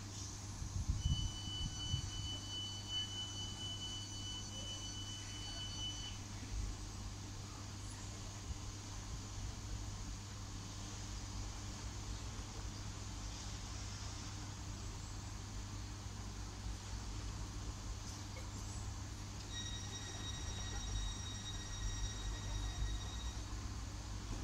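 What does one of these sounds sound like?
Train wheels squeal on the rails in a high, steady whine.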